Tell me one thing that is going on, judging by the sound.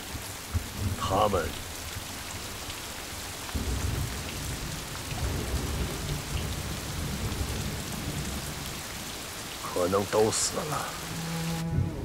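An older man answers quietly and slowly.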